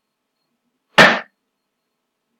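A single sharp click sounds.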